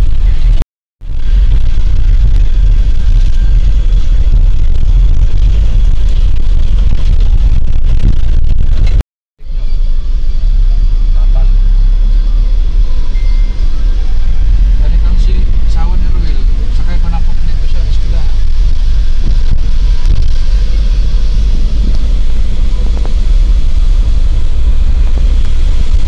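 A vehicle engine rumbles steadily as it drives along a road.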